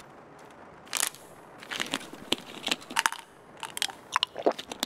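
A cap is twisted off a plastic bottle with sharp clicks.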